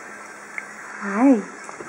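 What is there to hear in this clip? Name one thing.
A baby coos softly with a rising and falling voice.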